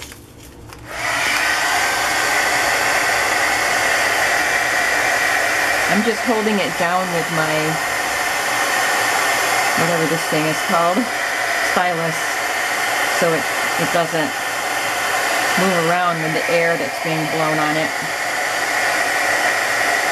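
A heat gun blows with a loud, steady roar.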